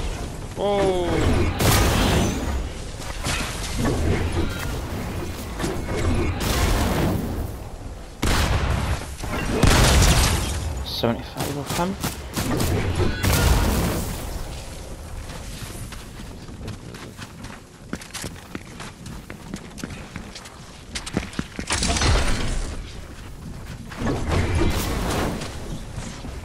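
A pickaxe strikes hard objects with heavy thuds.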